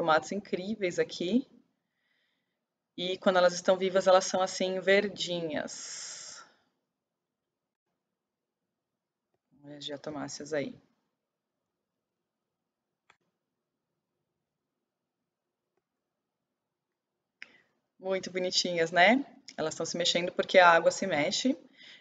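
A young woman talks calmly into a close microphone, with long pauses.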